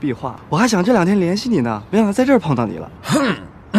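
A young man speaks warmly and cheerfully.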